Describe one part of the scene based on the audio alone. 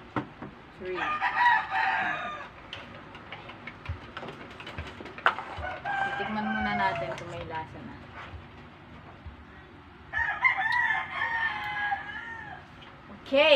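A young woman talks to a child nearby, calmly and warmly.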